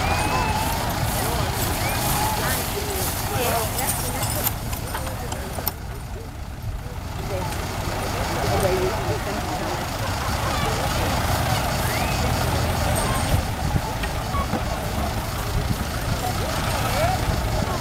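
A horse's hooves thud softly on straw.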